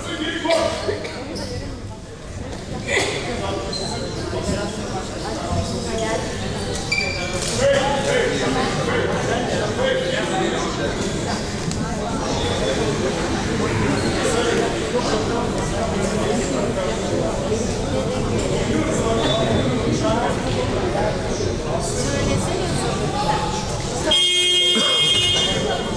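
A small crowd murmurs in a large echoing hall.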